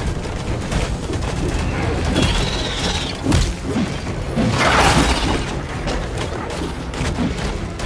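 Weapons clash and strike creatures in quick, sharp hits.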